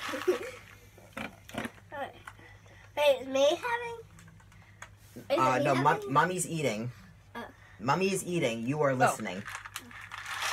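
A girl talks and laughs loudly with animation close by.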